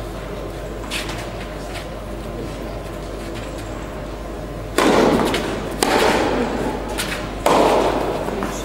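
Tennis balls are struck with rackets and bounce on the court, echoing in a large hall.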